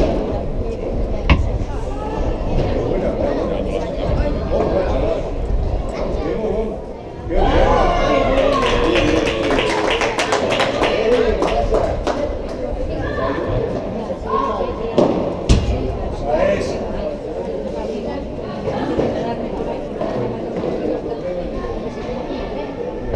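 Boys shout and call out across the court, echoing in a large hall.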